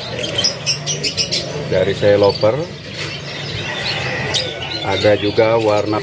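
A canary sings with rapid, high chirps and trills nearby.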